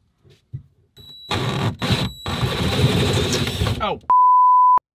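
A power drill whirs as a spade bit bores through a board.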